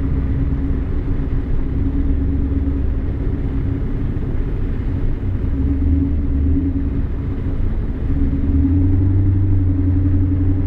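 A car engine hums steadily from inside the car, rising a little in pitch near the end.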